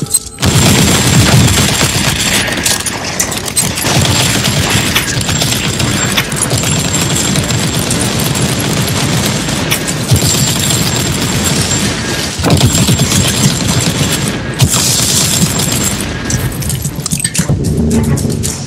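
Rapid gunfire blasts and explosions crash again and again.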